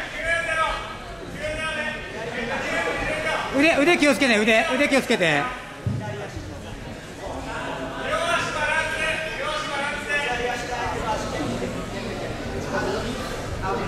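Adults call out and shout loudly in an echoing hall.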